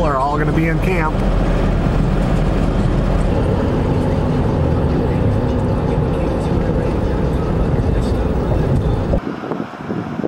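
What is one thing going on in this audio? A car drives along a highway with a steady low road rumble.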